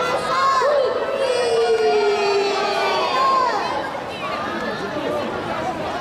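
Young women sing together through loudspeakers in a large echoing hall.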